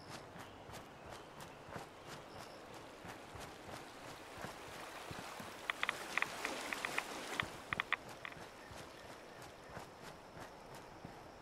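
Footsteps crunch steadily over grass and gravel.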